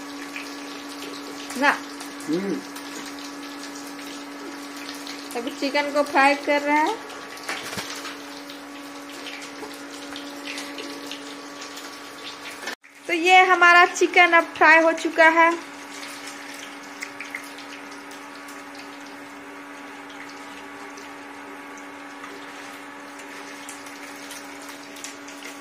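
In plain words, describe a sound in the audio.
An electric cooktop hums steadily.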